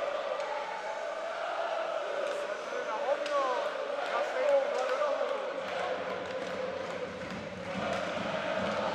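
Hockey sticks click sharply against a puck.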